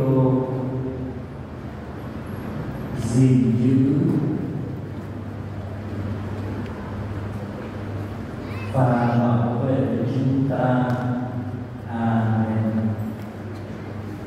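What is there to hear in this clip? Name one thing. A crowd of young men and women chants loudly together in short bursts.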